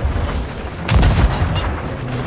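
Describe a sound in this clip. A fiery explosion roars nearby.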